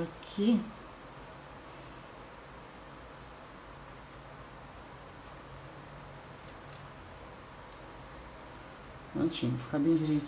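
Yarn rustles softly as it is pulled through stitches.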